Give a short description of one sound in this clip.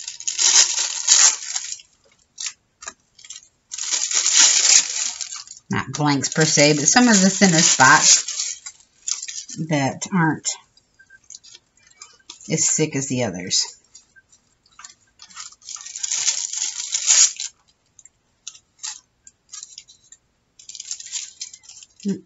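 Thin foil paper crinkles and rustles under fingers.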